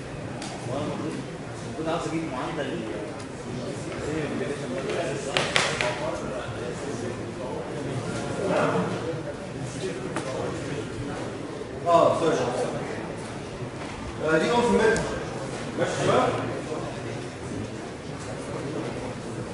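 A man lectures, speaking calmly.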